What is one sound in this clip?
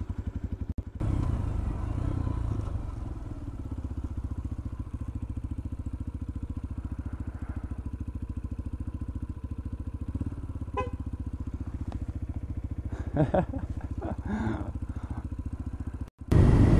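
A motorcycle engine revs and pulls away, then runs steadily along a road.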